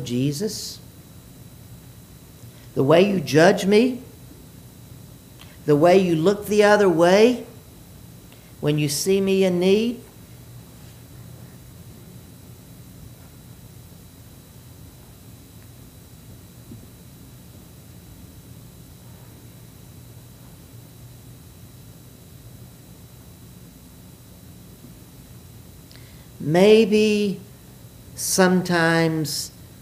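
An elderly man sings short chanted phrases through a microphone, with long pauses between them.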